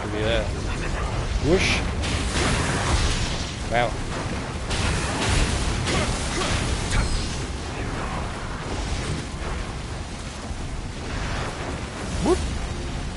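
A big beast growls and roars.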